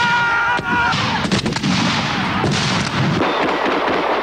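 Rifles fire a loud volley outdoors.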